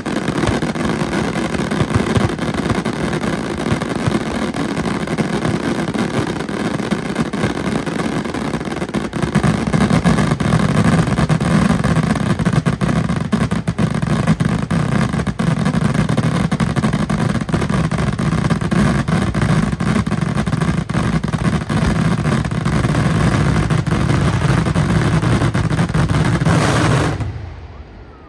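Fireworks boom and crackle in rapid bursts outdoors.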